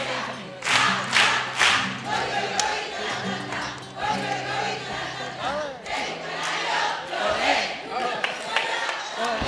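A large male chorus sings together on a stage.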